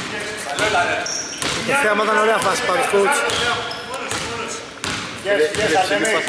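A basketball is dribbled on a hardwood floor.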